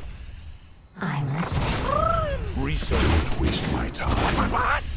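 A magic blast bursts and crackles loudly.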